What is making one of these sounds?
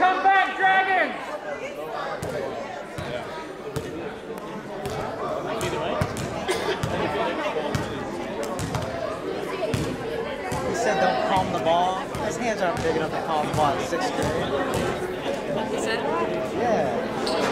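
Children talk and shout in a large echoing hall.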